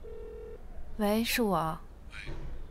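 A young woman speaks quietly into a phone.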